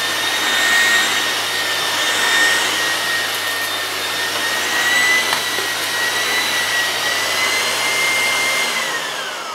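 A vacuum cleaner motor whines steadily, its pitch sinking as it winds down at the end.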